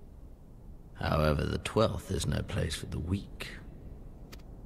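A man speaks calmly in a low, deep voice, close and clear.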